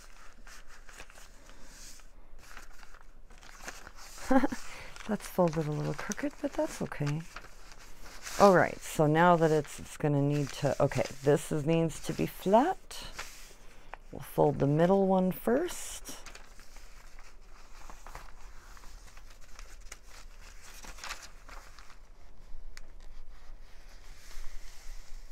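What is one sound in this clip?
Paper rustles and crinkles as it is folded and handled.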